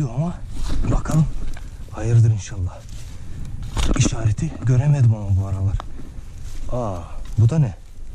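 A small shovel scrapes and digs into soil.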